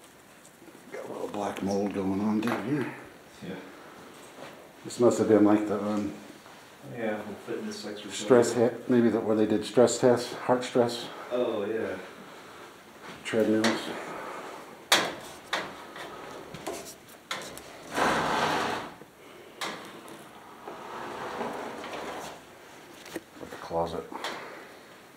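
A young man talks quietly close by.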